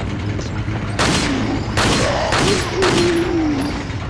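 Pistol shots ring out, echoing.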